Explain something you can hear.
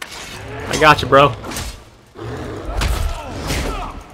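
A blade slashes and strikes a bear.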